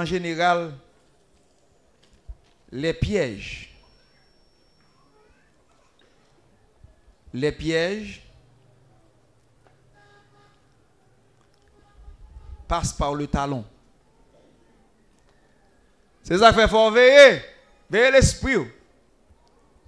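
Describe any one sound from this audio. A man sings into a microphone in short, drawn-out phrases separated by pauses.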